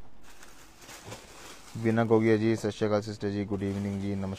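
Fabric rustles softly as it is handled and folded.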